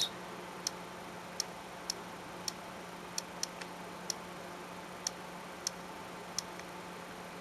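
Fingertips tap lightly on a touchscreen.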